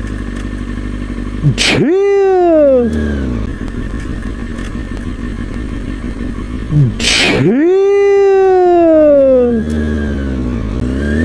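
A motorcycle engine idles close by.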